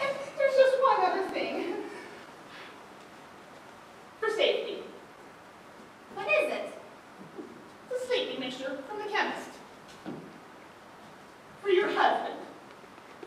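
Two young women speak in turn, heard from a distance in a large echoing hall.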